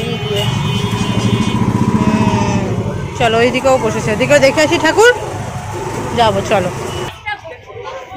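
Motorcycle engines rumble and idle nearby on a busy street.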